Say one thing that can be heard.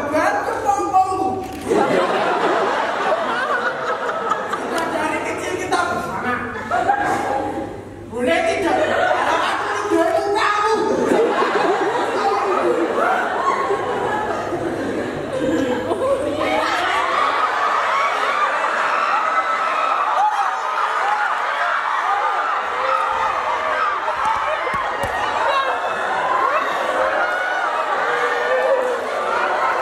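Young men speak and shout with animation on a stage, heard from the audience in a large hall.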